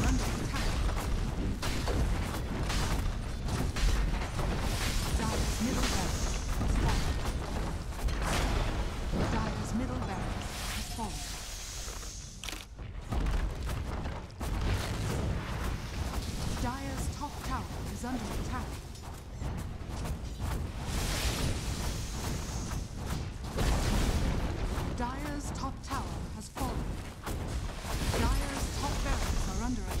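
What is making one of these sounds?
Game spells and attacks crackle and burst in a fast fight.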